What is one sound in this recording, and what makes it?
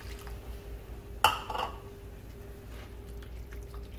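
A wooden spoon stirs thick sauce in a metal pot.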